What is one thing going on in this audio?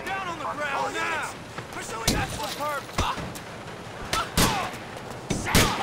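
Blows thump during a scuffle with a police officer.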